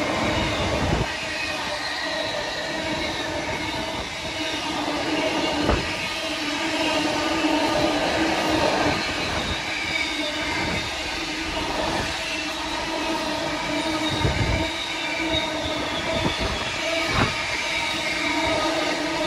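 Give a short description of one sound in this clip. Freight wagons rumble and clatter steadily along the rails.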